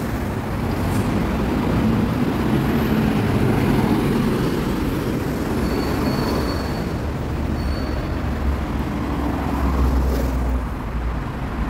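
A bus engine idles close by.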